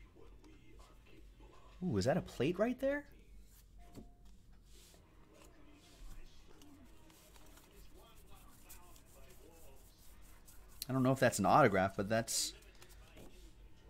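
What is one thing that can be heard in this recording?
Trading cards shuffle and flick softly between fingers.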